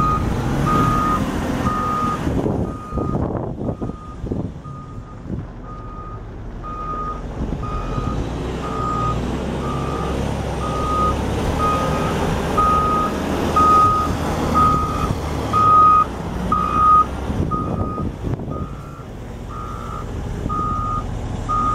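A heavy loader's diesel engine rumbles and roars nearby.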